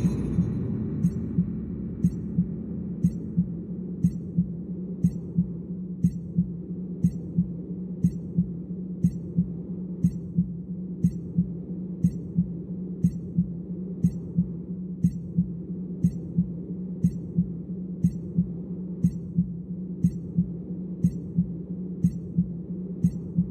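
A countdown timer ticks steadily, about once a second.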